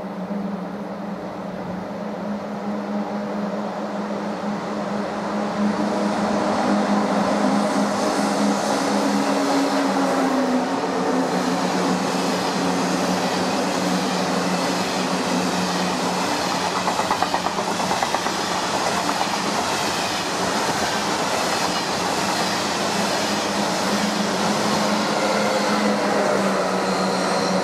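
A high-speed train approaches and rushes past with a loud, steady roar in an echoing station.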